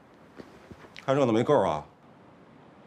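A second man speaks calmly, close by.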